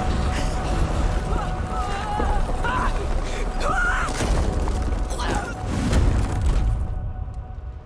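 Rocks crash and tumble down a stone wall.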